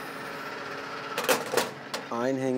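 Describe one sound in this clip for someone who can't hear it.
A fuel nozzle clunks back into its holder.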